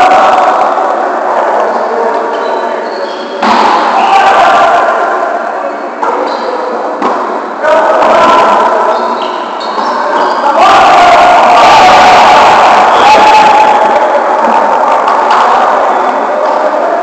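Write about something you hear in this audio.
Men shout and call out to each other in a large echoing gym.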